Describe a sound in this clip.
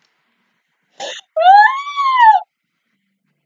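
A young woman squeals excitedly close to a microphone.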